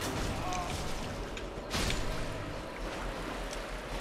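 Metal weapons clash and clang.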